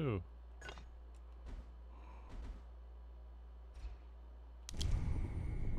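Soft interface clicks sound a few times.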